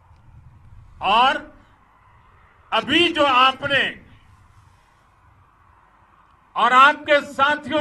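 An elderly man speaks forcefully into a microphone outdoors, in short bursts with pauses.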